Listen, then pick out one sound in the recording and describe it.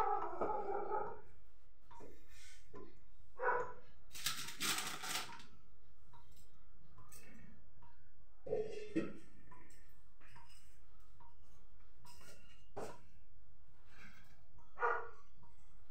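Dishes and utensils clatter on a counter.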